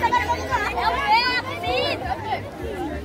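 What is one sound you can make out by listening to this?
A child shrieks in a high voice.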